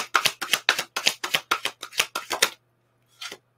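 Cards riffle and snap quickly in a hand.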